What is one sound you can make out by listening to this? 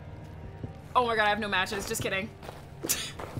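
A young woman exclaims loudly into a close microphone.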